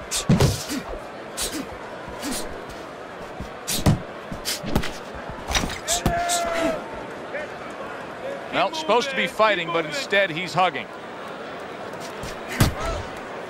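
Punches thud against a boxer's body.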